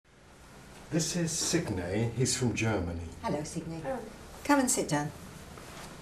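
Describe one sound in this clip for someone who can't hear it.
An elderly man speaks warmly close by.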